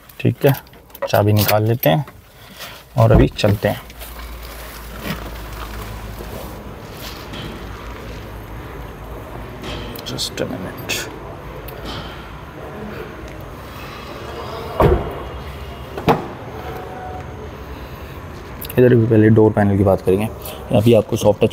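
A man speaks calmly close to the microphone.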